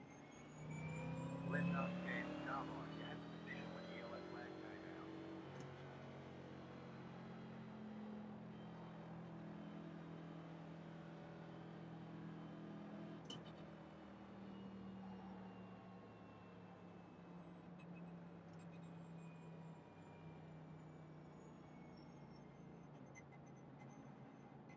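A race car engine drones steadily at low speed.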